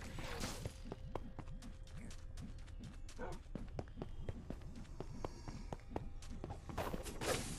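Quick footsteps patter along.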